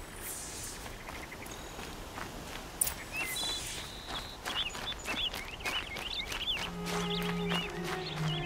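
Footsteps crunch over dirt and grass.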